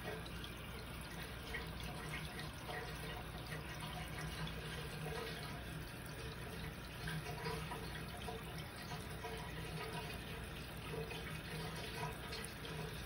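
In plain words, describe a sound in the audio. Air bubbles gurgle steadily through water.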